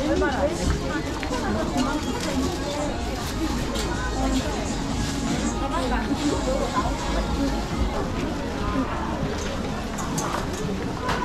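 Footsteps shuffle and tap on a hard floor.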